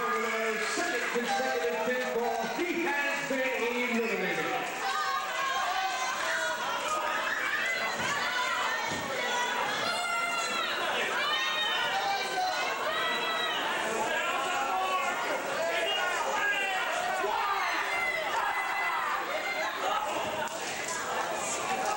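A crowd cheers and shouts loudly throughout in an echoing hall.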